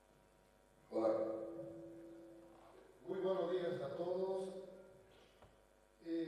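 A man speaks formally into a microphone, heard through loudspeakers in a large echoing hall.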